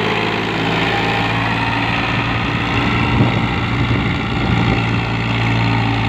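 Soil scrapes and crumbles under a tractor's blade.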